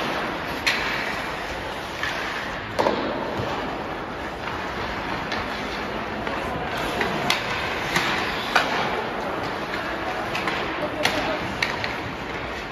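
Hockey sticks clack sharply against a puck and the ice.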